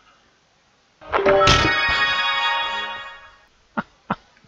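A cheerful game jingle plays a rising tune.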